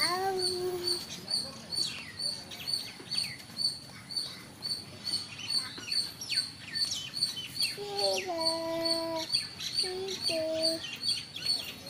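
A calf bleats close by.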